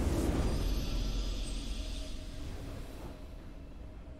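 A triumphant game jingle swells and then fades.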